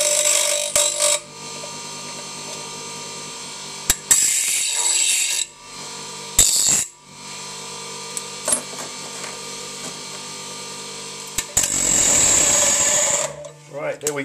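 A bench grinder motor hums steadily.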